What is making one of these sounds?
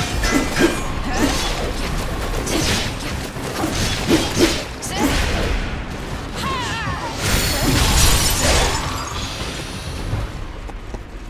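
Metal weapons clash and strike in a fast fight.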